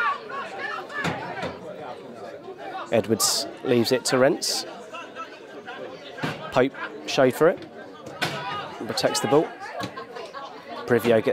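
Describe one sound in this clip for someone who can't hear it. Spectators murmur and chatter nearby outdoors.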